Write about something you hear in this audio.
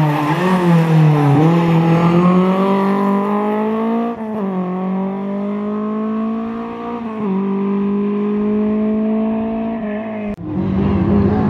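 A rally car engine roars and revs hard as it races past.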